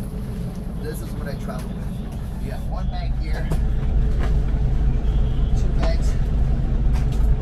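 Bags rustle and thump as a man handles them.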